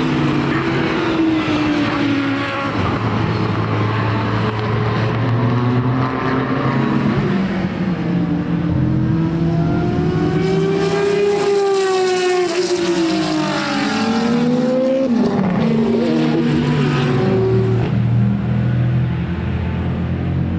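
Racing car engines roar loudly and rise and fall in pitch as cars speed past.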